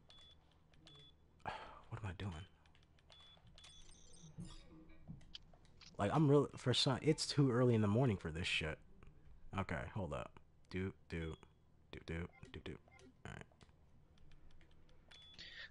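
Electronic keypad buttons beep with short tones.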